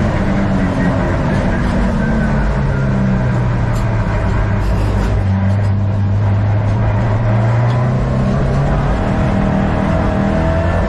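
The turbocharged flat-four engine of a Subaru WRX STI pulls hard and shifts gears, heard from inside the cabin.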